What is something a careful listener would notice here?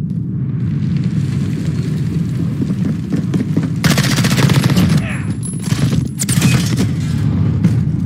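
Gunshots ring out in a burst, with loud blasts.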